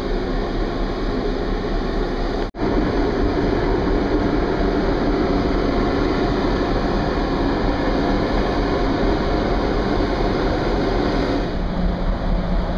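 Strong wind blows steadily outdoors, buffeting loudly.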